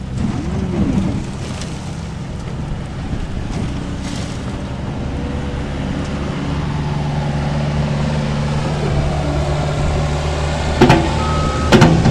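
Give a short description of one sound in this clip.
Dirt pours from a loader bucket into a pickup bed with a soft rushing sound.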